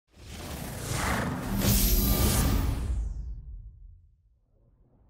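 A game console plays a swelling startup whoosh that fades away.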